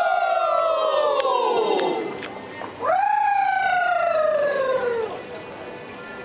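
A group of men calls out in long, falling cries in a large echoing hall.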